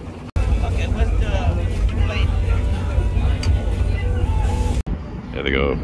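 Meat sizzles loudly on a hot grill.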